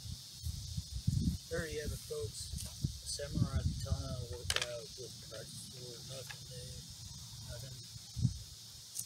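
A man talks outdoors, close by.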